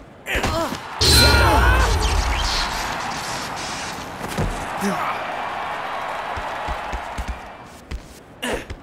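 A crowd in a large arena cheers and roars.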